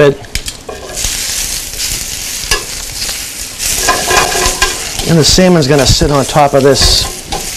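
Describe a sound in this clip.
Leaves sizzle in a hot pan.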